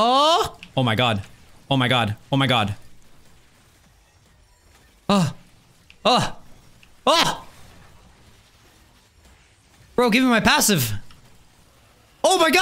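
A young man speaks in short, lively bursts close to a microphone.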